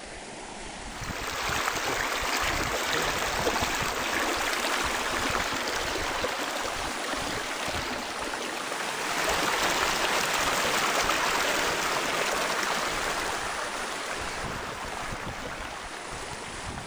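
A small waterfall splashes and rushes over rocks close by.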